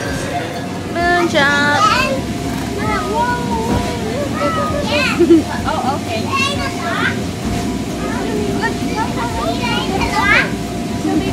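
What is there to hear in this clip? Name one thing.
Young children shout and squeal with high voices nearby, outdoors.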